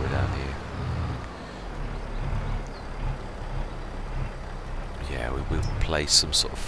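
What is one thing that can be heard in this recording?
A tractor engine rumbles steadily at low speed.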